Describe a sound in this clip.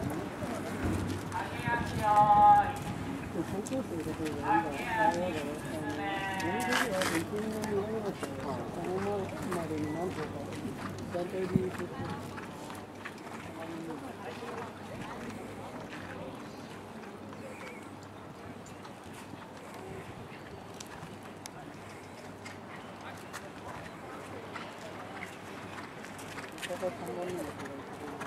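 Horses' hooves thud softly on sand.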